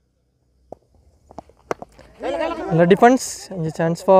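A cricket bat knocks a ball with a sharp crack.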